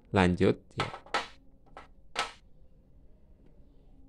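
A small plastic part is set down on a metal panel with a light knock.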